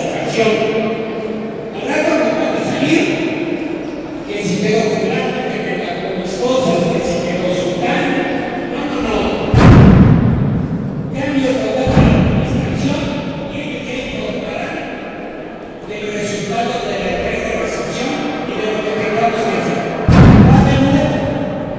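A man speaks to an audience through a microphone and loudspeakers, calmly, in a large echoing hall.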